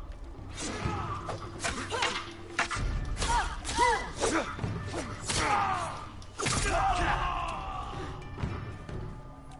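Swords clash and clang in a fast fight.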